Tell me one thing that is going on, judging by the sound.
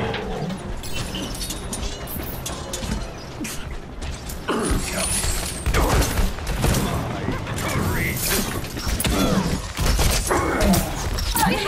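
Video game explosions burst.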